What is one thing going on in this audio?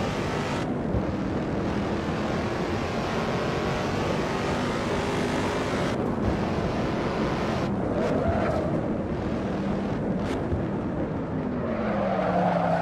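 Tyres hum and rumble on the track.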